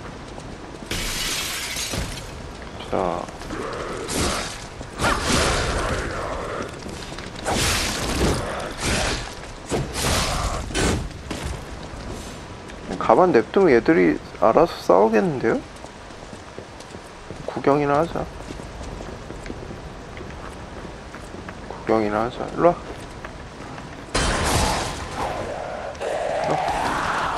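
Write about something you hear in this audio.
Weapons clash and slash in a fight.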